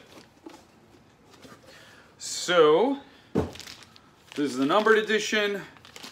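Plastic wrapping crinkles in a man's hands.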